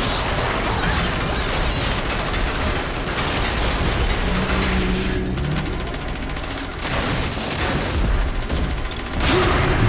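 Gunfire and explosions crackle and boom loudly.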